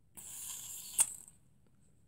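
A metal can clicks against a small fitting.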